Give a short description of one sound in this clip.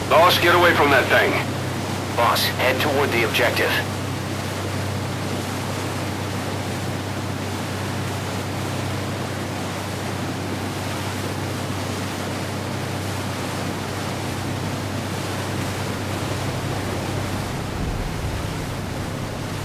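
Water splashes and rushes against a speeding boat's hull.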